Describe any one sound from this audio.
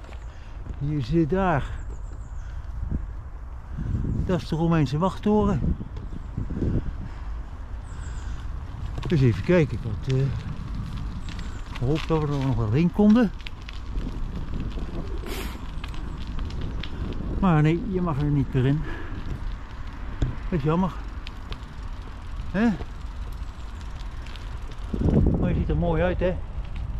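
An elderly man talks calmly close to a microphone, in short phrases.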